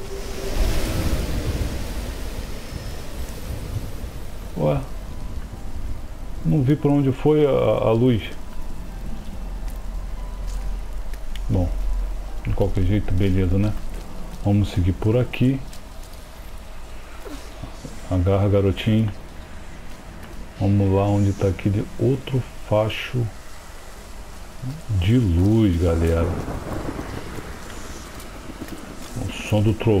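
Heavy rain falls.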